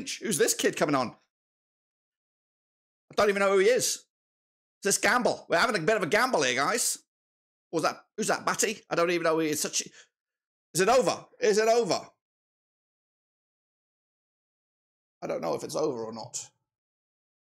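A middle-aged man talks with animation into a close microphone, in short bursts with pauses.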